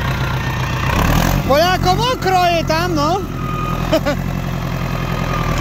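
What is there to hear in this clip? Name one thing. A diesel tractor engine idles with a low, steady rumble, outdoors.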